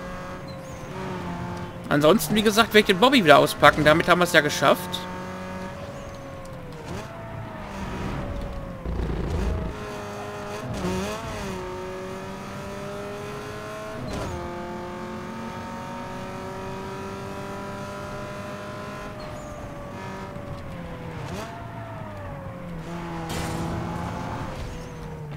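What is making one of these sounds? A racing car engine roars at high speed, its pitch rising and falling with the gear changes.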